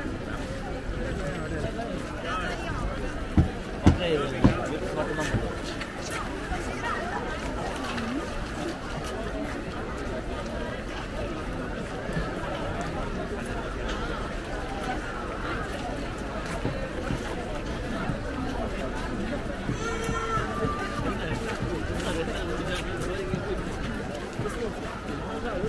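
A crowd murmurs and chatters all around outdoors.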